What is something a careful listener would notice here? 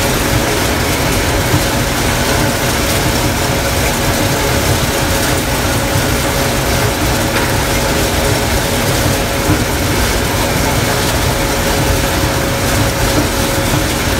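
A combine harvester engine roars steadily.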